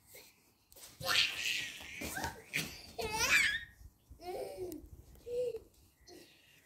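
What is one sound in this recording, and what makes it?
A young girl chatters and squeals excitedly close by.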